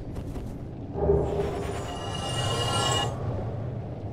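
A magic spell shimmers with a bright ringing whoosh.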